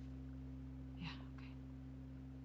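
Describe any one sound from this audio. A second young woman answers softly.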